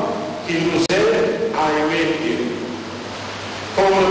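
A man chants slowly through a microphone in an echoing hall.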